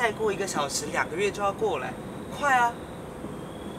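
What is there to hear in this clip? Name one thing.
A young man speaks softly nearby.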